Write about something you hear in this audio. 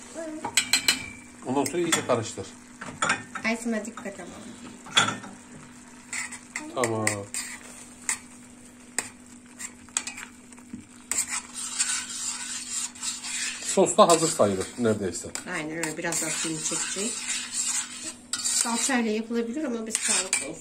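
A metal spoon stirs and scrapes inside a pot.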